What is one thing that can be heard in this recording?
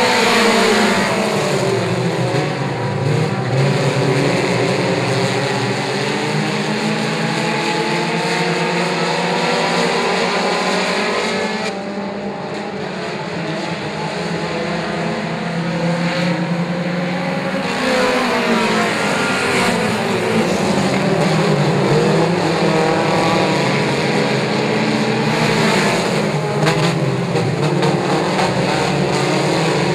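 Several race car engines roar loudly, revving up and down as the cars race around a dirt track.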